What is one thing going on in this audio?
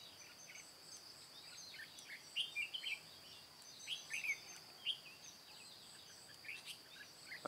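A small bird chirps sharply and repeatedly nearby.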